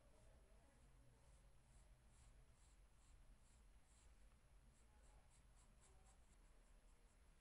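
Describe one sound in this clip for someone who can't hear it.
A pencil scratches and rubs softly on paper in short strokes.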